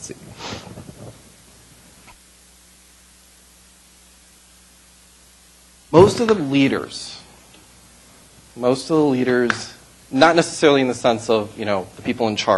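A middle-aged man speaks calmly through a microphone, pausing between phrases.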